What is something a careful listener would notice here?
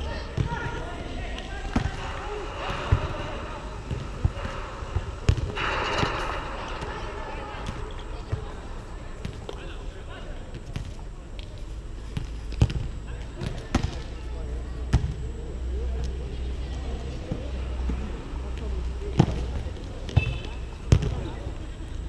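A volleyball is struck with sharp slaps by hands.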